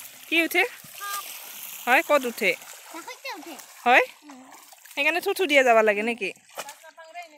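A young girl talks and laughs excitedly close by.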